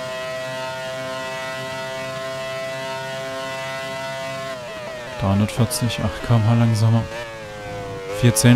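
A racing car engine screams at a steady high pitch, then drops sharply as the car brakes for a corner.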